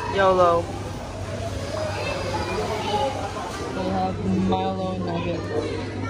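A crowd chatters indoors.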